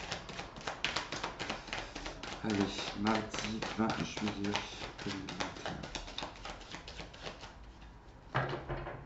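Playing cards riffle and flutter as a deck is shuffled.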